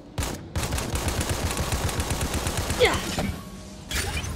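A rapid-fire gun shoots in quick bursts.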